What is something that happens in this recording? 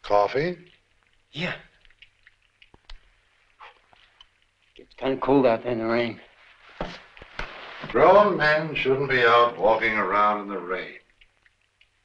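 A middle-aged man speaks tensely, close by.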